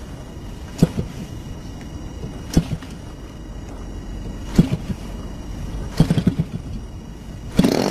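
A propeller is flicked by hand, with sharp knocks now and then.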